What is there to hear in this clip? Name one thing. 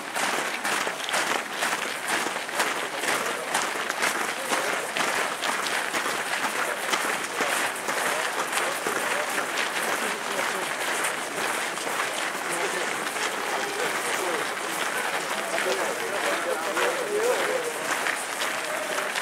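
Many footsteps crunch on gravel as a crowd marches past outdoors.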